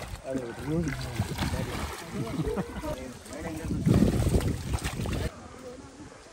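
Water splashes around a rolling inflatable ball.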